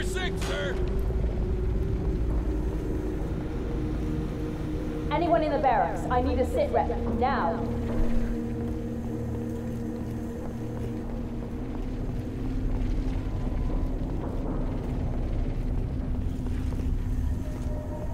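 A low, steady mechanical hum drones throughout.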